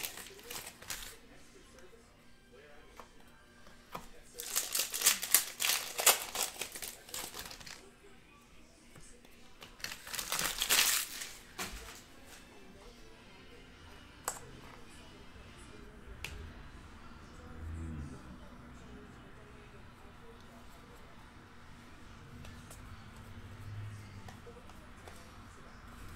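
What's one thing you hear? Trading cards tap and slide against one another.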